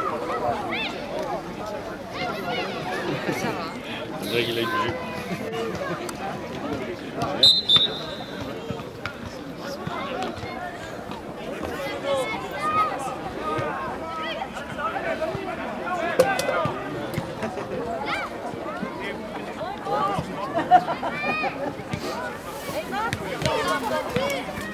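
Young players shout and call to each other across an open field.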